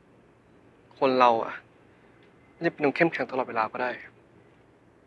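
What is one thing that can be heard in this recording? A young man speaks quietly and sadly, close by.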